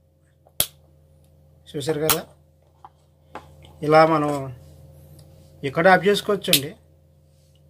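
A plastic light bulb holder clicks a few times as it is handled.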